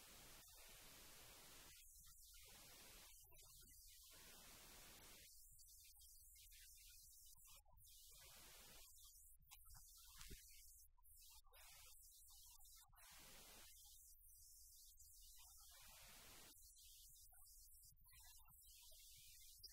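An elderly woman reads aloud calmly in an echoing room.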